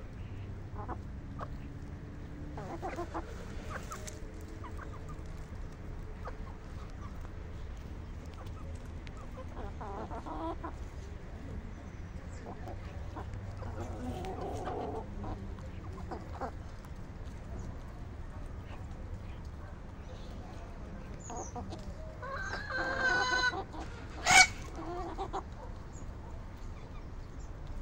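Chickens scratch and peck at the dry ground.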